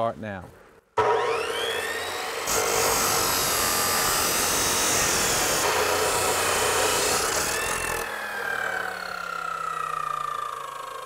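A cut-off saw motor starts with a loud whir and later winds down.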